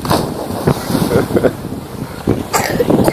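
A young girl splashes through shallow water.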